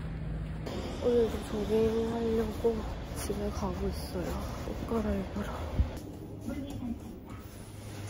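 A young woman talks quietly close by.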